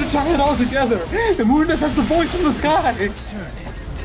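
Weapons clash and slash rapidly in a fight.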